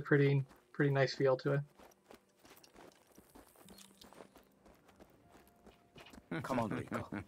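Footsteps run quickly over gravel.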